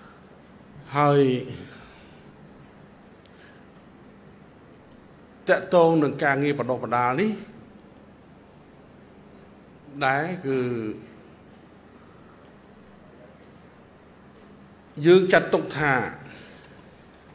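An elderly man speaks slowly and firmly into a microphone, in short phrases with pauses.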